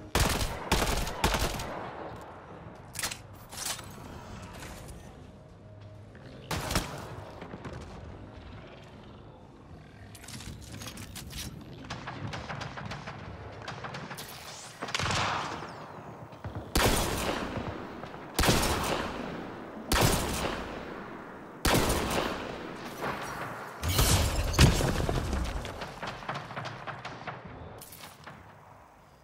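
Rifle shots crack and boom with echoing tails.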